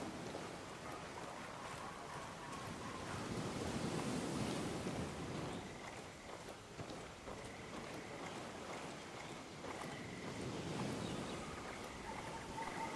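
Footsteps rustle through leafy undergrowth.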